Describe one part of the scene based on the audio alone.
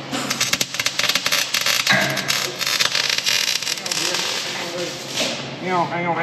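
An arc welder crackles and sizzles steadily.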